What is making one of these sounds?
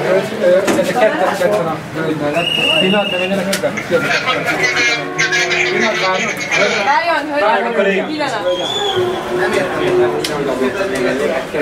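Several men talk over one another loudly and with agitation, close by.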